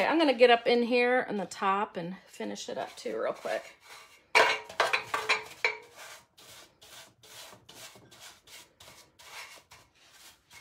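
A brush scrapes and dabs on a metal can.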